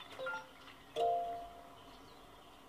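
A short electronic chime rings out from a game.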